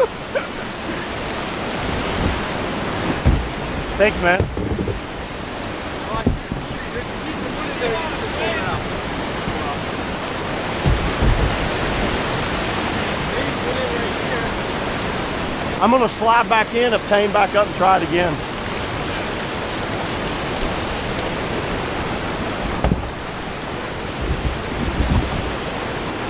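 Whitewater rapids rush and roar loudly over rocks.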